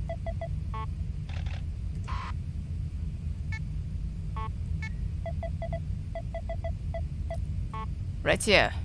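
Short electronic interface beeps sound as menu items change.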